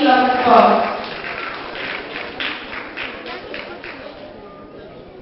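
A small audience claps.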